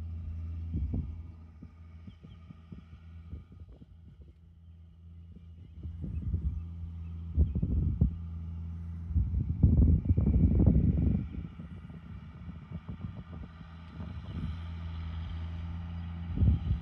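A seed drill rattles as a tractor pulls it across the soil.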